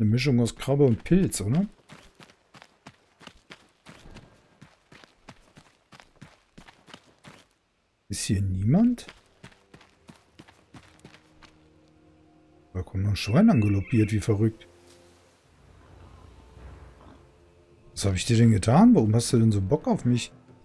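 A man speaks with animation into a close microphone, in short bursts.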